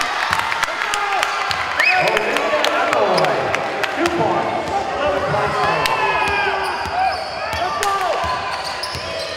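Players and spectators shout and call out in a large echoing hall.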